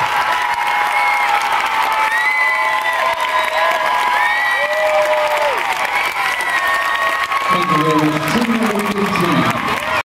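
An audience claps along in a large echoing hall.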